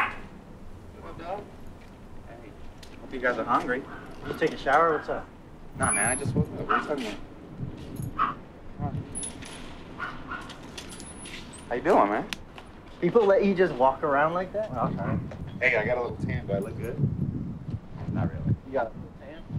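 Young men talk with animation close by, outdoors.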